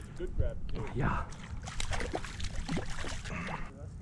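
A fish splashes in the water close by.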